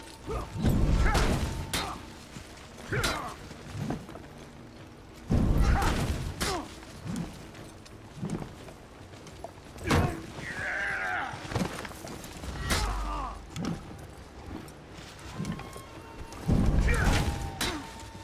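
A young man speaks close to a microphone, with animation.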